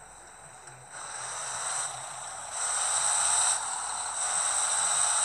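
A truck's engine roars louder as the truck pulls away.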